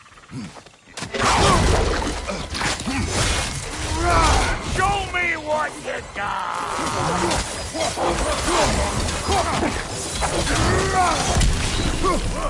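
A warrior's axe slashes and strikes at creatures.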